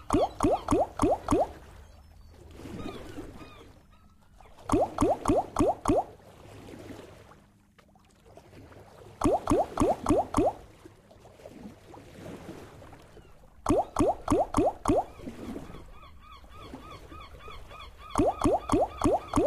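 Slot reels land one after another with quick bursts of bright chiming tones.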